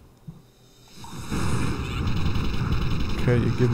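An electric zap crackles and buzzes loudly.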